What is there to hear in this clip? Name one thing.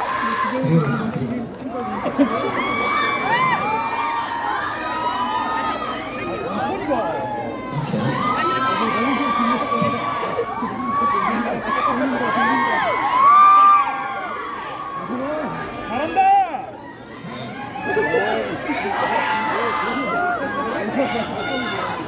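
A young man sings into a microphone through loud speakers, echoing in a large hall.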